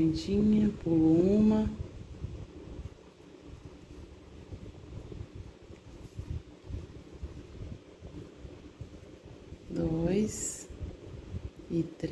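Yarn rustles softly as a hook pulls it through stitches.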